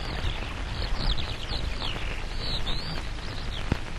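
A shallow stream flows and gurgles over rocks.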